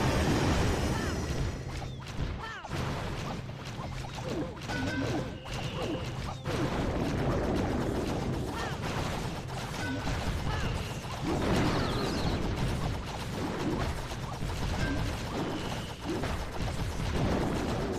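Cannons fire and buildings burst in a noisy cartoon battle.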